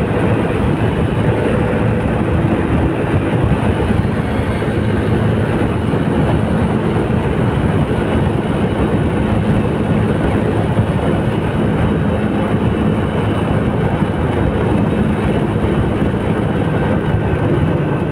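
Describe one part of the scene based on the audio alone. Tyres roll with a steady hum on the road.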